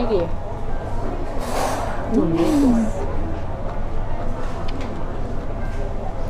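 A young woman slurps noodles while eating.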